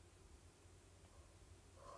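A young woman laughs behind her hand.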